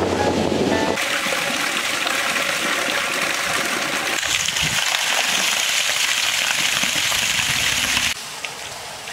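Water pours steadily in a heavy stream into a metal basin.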